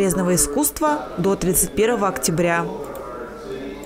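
A woman speaks loudly and animatedly close by.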